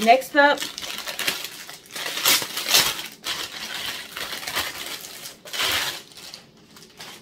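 Plastic wrapping crinkles and rustles loudly close by.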